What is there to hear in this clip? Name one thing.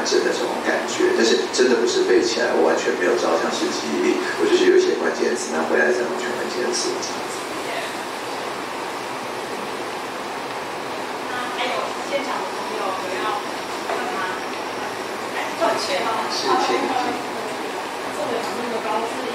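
A woman speaks calmly into a microphone through loudspeakers in a large echoing room.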